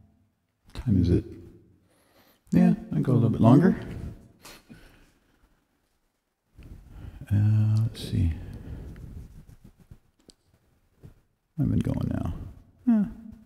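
A man talks into a headset microphone with animation.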